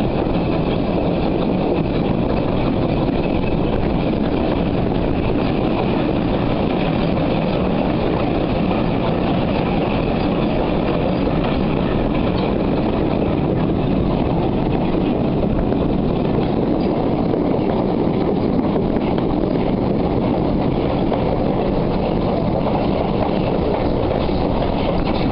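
Steel wheels clatter over rail joints.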